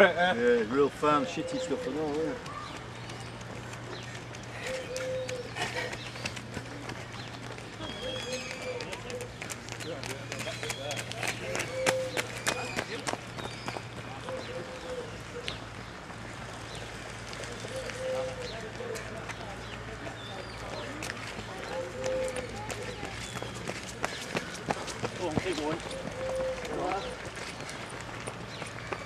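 Runners' footsteps patter on wet ground.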